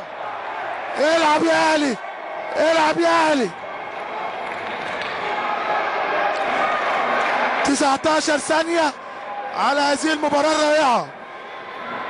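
A large crowd chants loudly in unison in an echoing arena.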